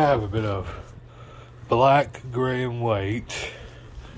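Fabric rustles as a hand lifts cloth.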